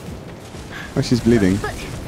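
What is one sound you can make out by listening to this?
A fireball bursts with a roaring whoosh.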